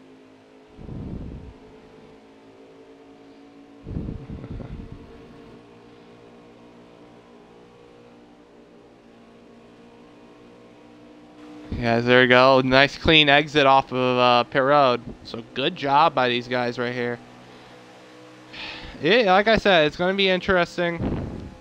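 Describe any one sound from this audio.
Race car engines drone steadily at high speed.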